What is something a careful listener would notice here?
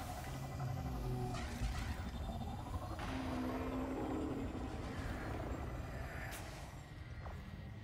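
Laser weapons fire in rapid bursts.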